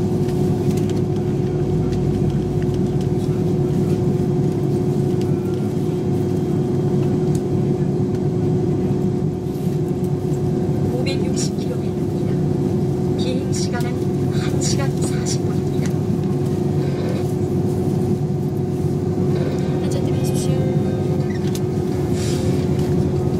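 Aircraft wheels rumble over the runway surface.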